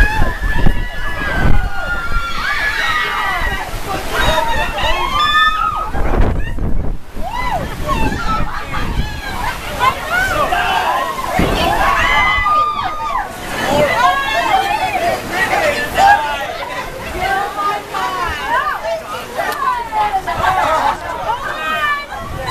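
Heavy rain pours down outdoors and drums on a tent roof.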